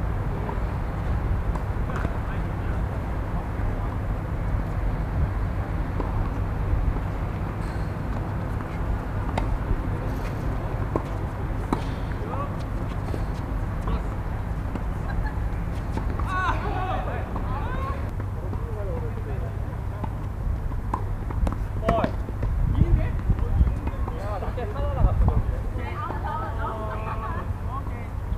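A tennis ball is struck back and forth with rackets outdoors.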